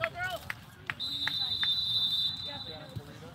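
A referee's whistle blows a long blast.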